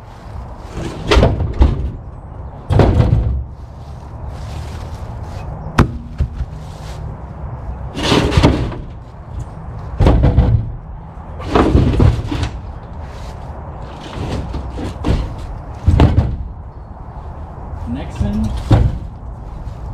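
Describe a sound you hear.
Heavy tyres thump and rub as they are loaded into a car.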